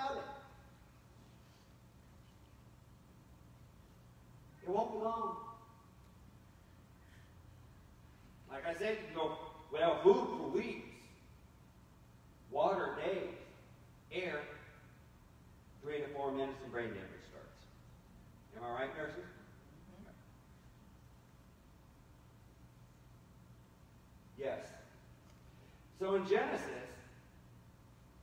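A man preaches with feeling into a microphone, in bursts with long pauses, in a large echoing hall.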